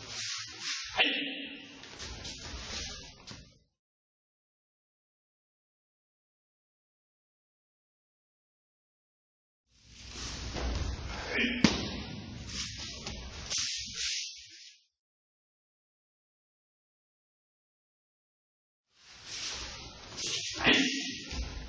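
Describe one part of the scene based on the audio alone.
A body thumps down onto a mat.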